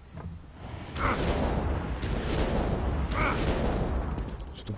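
A magic staff casts spells in sharp whooshing bursts.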